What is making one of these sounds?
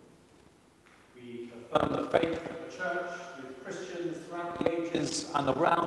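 A man chants in a steady sung tone, echoing in a large hall.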